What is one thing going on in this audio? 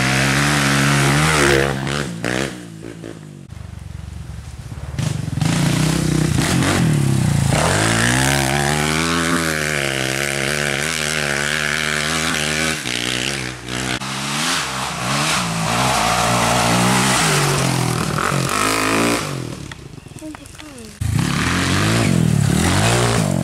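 A dirt bike engine revs loudly, roaring past up close and whining as it fades into the distance.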